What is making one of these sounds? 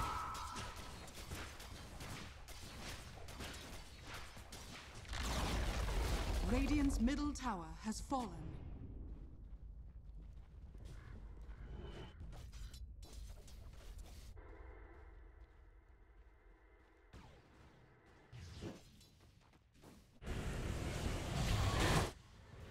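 Blows and hits clash in a battle.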